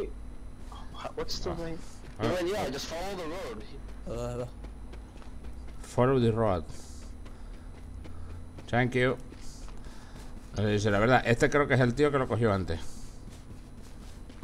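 Footsteps run quickly on a hard road.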